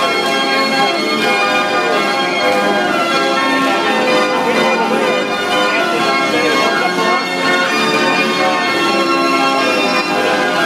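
Loud, cheerful organ music plays from a carousel.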